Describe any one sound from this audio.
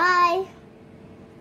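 A young girl speaks briefly up close.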